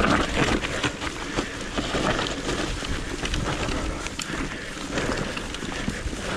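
A bicycle frame and chain clatter over bumps.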